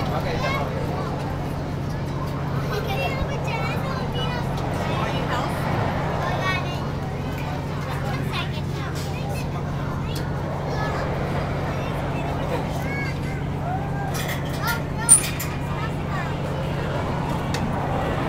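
A ride's motor hums steadily.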